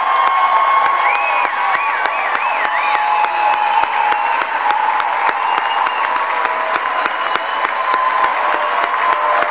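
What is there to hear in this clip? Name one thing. A large audience applauds in an echoing concert hall.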